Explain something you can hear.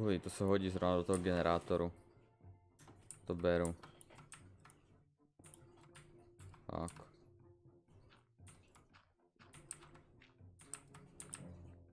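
A pickaxe taps and digs at stone in a video game.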